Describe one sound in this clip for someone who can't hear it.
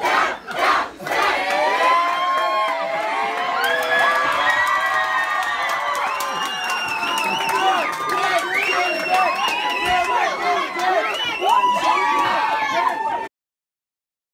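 A group of young people sing together.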